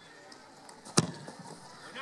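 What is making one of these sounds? A football is struck hard with a sharp thud.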